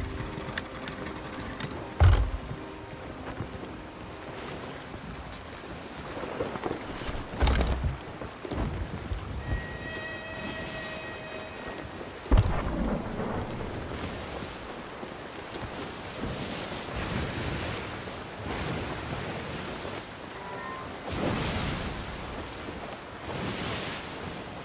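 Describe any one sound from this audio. Wind rushes steadily over open sea.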